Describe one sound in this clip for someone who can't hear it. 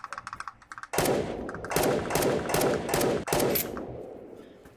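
A pistol fires several shots in quick succession.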